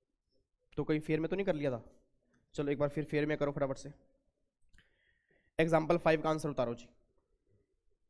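A man speaks with animation into a microphone in short bursts.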